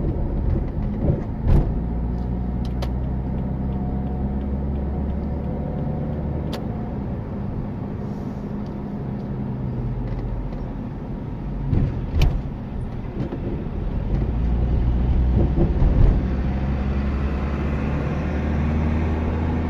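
Tyres roll over the road with a steady rumble.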